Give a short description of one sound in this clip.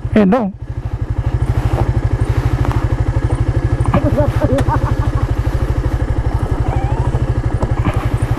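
Tyres crunch over a rough dirt road.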